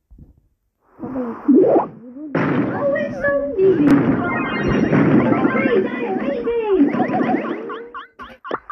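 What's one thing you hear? Blasts and zaps fire rapidly in a fight.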